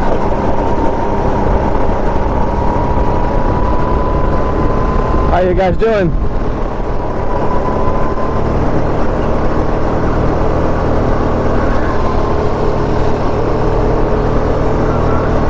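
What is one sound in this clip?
Wind rushes past at speed.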